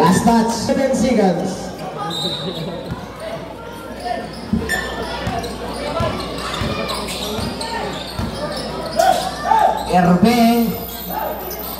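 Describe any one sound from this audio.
A crowd of spectators shouts and cheers nearby.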